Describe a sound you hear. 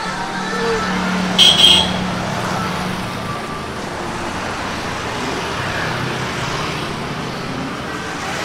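Traffic hums along a street outdoors.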